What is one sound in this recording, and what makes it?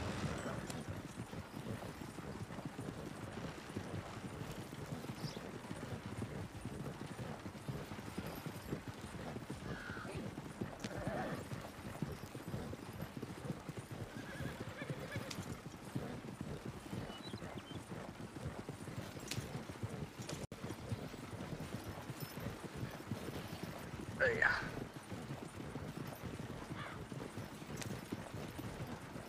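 A horse-drawn wagon rattles and clatters along a dirt track.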